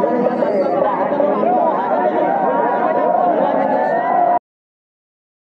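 A crowd of men cheers and chants loudly close by.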